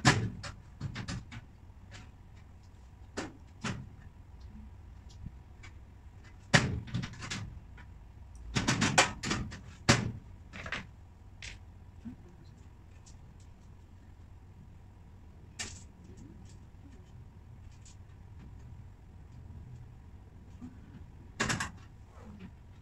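A woman knocks and handles cabinet panels as she assembles them.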